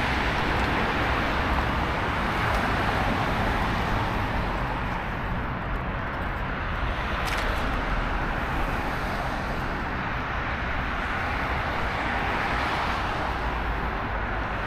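Cars pass by close, swelling and fading.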